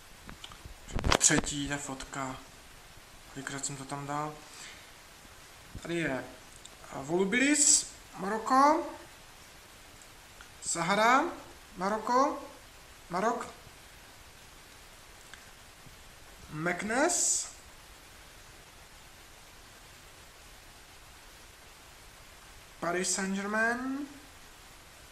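A man speaks calmly up close, in short phrases with pauses.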